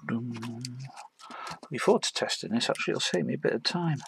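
A reel of solder wire rattles as it is unwound.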